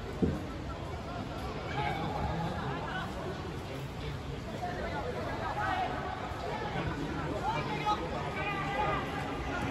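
Football players shout and call to each other from a distance across an open field.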